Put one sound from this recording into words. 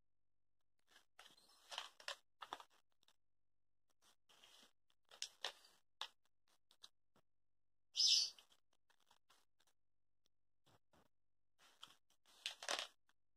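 Glossy magazine pages rustle as a hand turns them.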